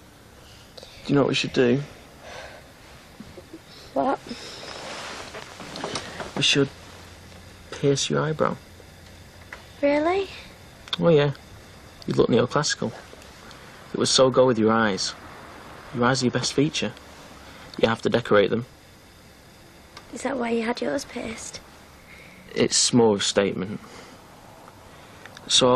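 A young man speaks softly and closely.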